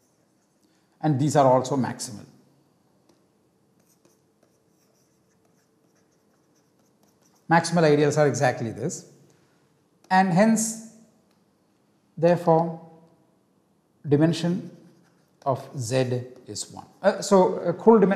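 A man lectures calmly into a close microphone, in short bursts with pauses.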